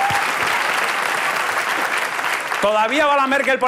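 A large audience laughs and applauds in a big hall.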